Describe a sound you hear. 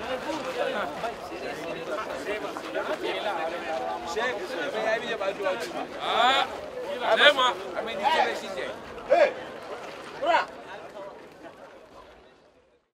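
A crowd of men chatter outdoors nearby.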